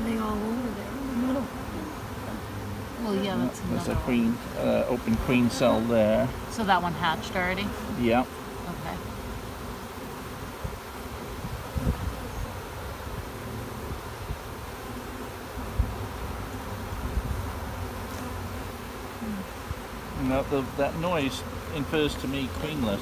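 Honeybees buzz steadily close by.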